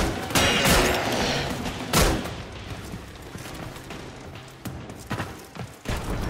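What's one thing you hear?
A gun fires in short bursts with loud blasts.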